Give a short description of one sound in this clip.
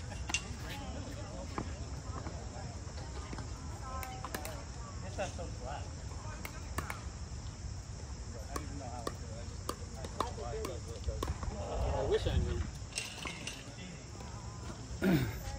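Pickleball paddles strike a plastic ball with sharp pops.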